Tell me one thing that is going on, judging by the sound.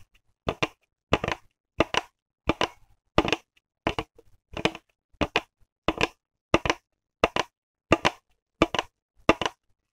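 Fingernails tap and scratch on a crinkly plastic bottle in short, regular bursts, close up.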